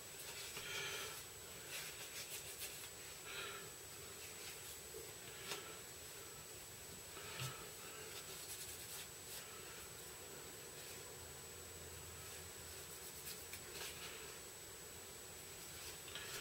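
Small plastic parts click and rustle softly in a person's hands.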